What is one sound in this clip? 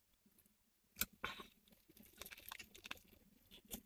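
A young woman bites and chews crunchy food close by.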